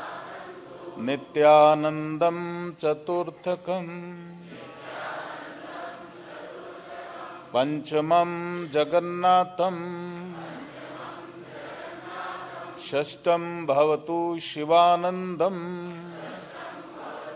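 A man chants slowly in a deep, steady voice.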